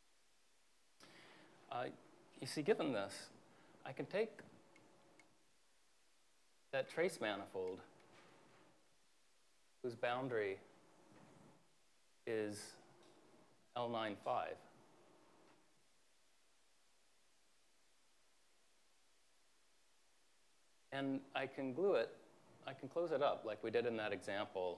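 A man speaks calmly in a lecture, in short bursts with pauses.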